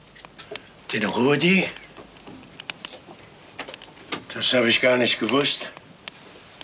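A second elderly man answers in a low voice.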